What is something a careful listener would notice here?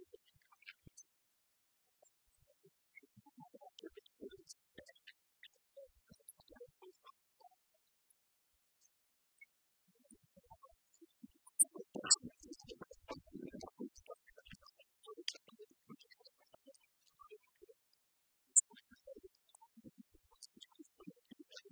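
Keys click on laptop keyboards.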